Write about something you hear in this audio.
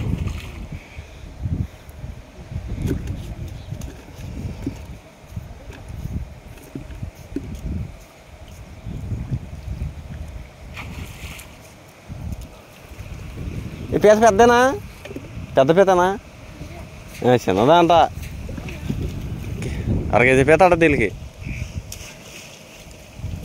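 Water splashes as a man wades in a shallow pond.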